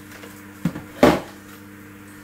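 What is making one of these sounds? A heavy object thuds onto a table.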